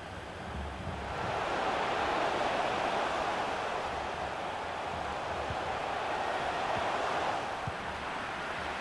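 A stadium crowd roars, swelling and then fading.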